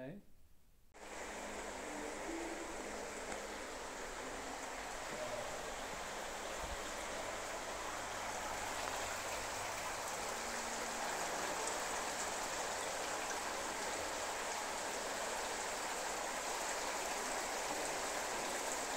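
Water splashes steadily in a large echoing indoor pool hall.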